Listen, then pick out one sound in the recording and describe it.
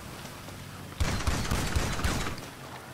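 An automatic rifle fires a rapid burst of shots.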